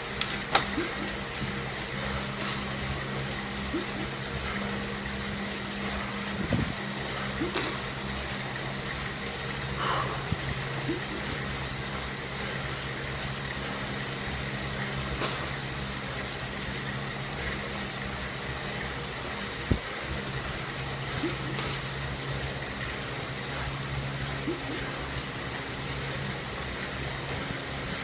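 A smart trainer hums steadily under a pedalling cyclist.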